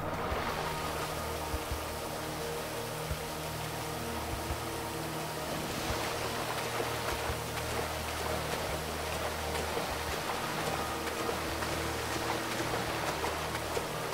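A swimmer splashes through the water.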